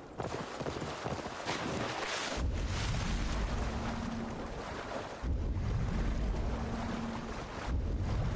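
Water splashes as a horse wades through a river.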